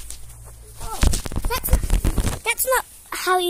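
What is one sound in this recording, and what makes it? A trampoline mat thumps and creaks as a child bounces and lands.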